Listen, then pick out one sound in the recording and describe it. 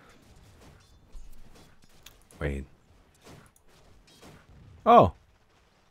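Weapons clash and thud in game combat.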